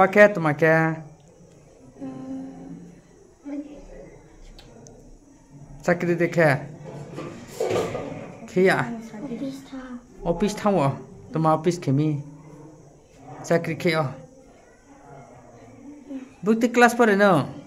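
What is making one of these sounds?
A young boy speaks shyly and haltingly, close by.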